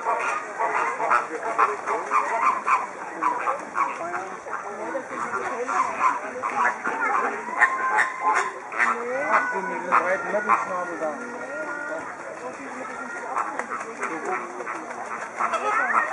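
A flock of flamingos honks and grunts noisily nearby.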